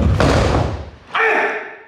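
A body thuds onto a wooden floor.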